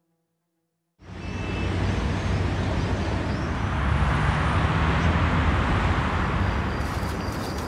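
Distant city traffic hums steadily.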